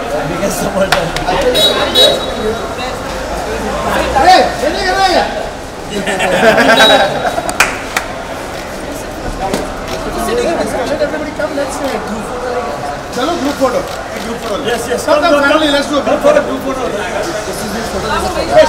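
Several men talk and laugh together in a crowd.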